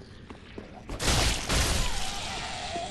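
A sword swings and strikes with a heavy burst.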